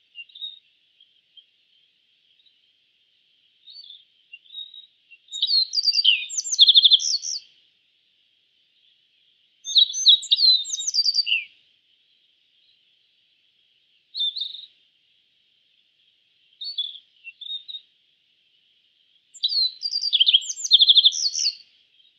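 A small bird sings short bursts of bright, twittering song, with pauses between phrases.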